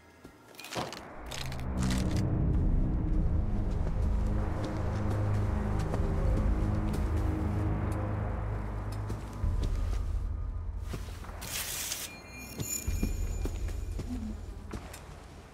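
Footsteps thud slowly across a hard floor.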